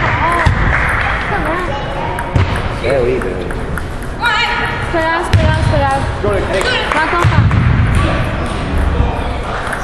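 A table tennis ball clicks back and forth off paddles and the table in an echoing hall.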